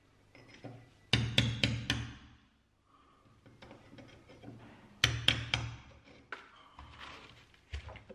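A chisel scrapes and chips at plaster.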